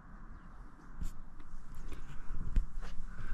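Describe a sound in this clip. Fingers rub and knock close by.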